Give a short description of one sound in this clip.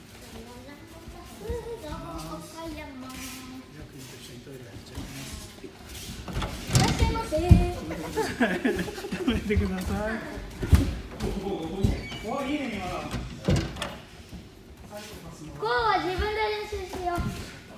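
Children and men call out and talk in a large echoing hall.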